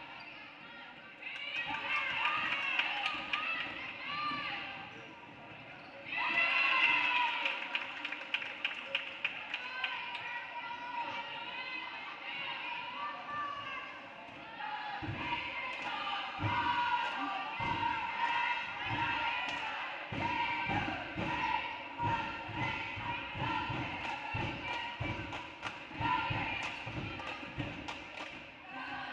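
Sneakers squeak sharply on a hardwood court in a large echoing gym.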